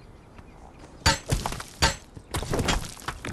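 A pickaxe strikes rock with loud, hard blows.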